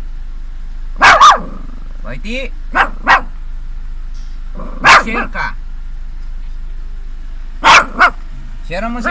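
A dog barks sharply close by.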